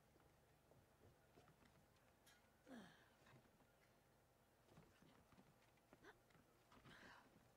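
Hands knock and scrape on wooden beams while climbing.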